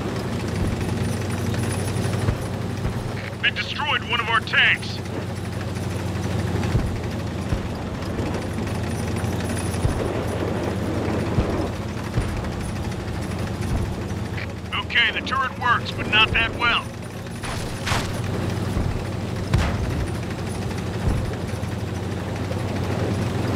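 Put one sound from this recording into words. Tank tracks clatter over the ground.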